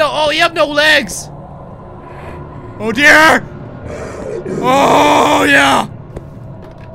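A young man shouts and screams in fright close to a microphone.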